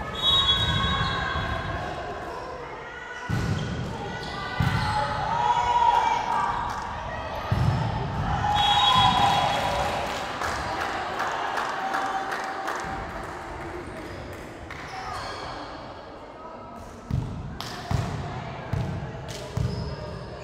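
Young girls shout and call out to each other.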